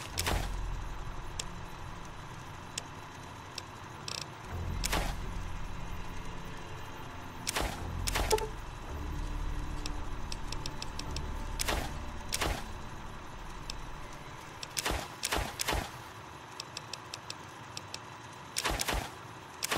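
Short electronic clicks and beeps sound as a menu is scrolled.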